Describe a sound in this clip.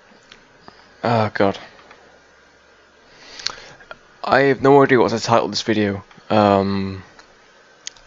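A man speaks with animation into a headset microphone.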